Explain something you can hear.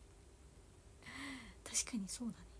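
A young woman laughs lightly.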